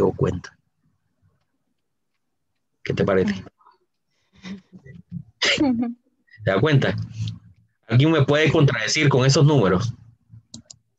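A woman speaks calmly and close to a microphone, heard through an online call.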